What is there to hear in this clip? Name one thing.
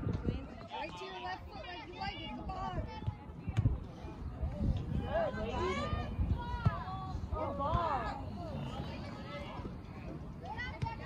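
Young women shout and call out from a distance outdoors.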